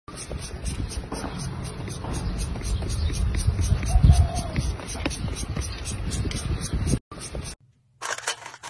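A scraper scrapes thick wet paste off a metal tray with a wet, gritty rasp.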